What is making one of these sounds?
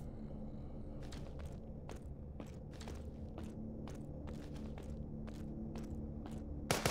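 Footsteps crunch steadily on snowy ground.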